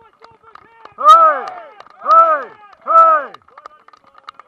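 A young man shouts loudly a few times.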